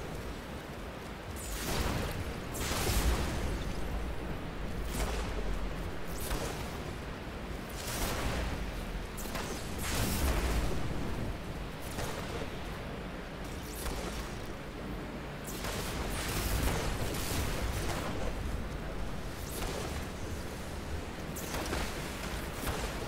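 Wind howls in strong, rising and falling gusts.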